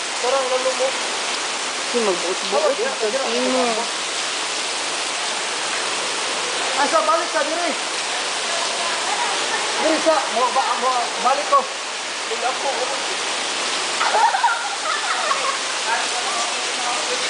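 A young man talks and calls out nearby, outdoors.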